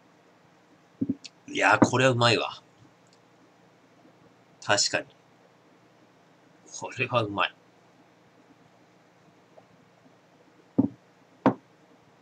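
A glass knocks down onto a wooden table.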